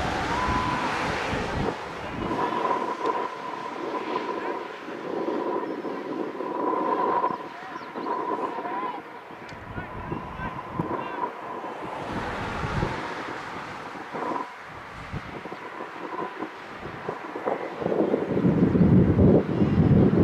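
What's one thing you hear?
Wind rumbles past.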